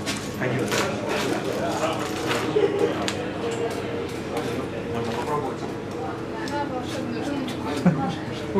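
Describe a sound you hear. Several people talk and chatter nearby.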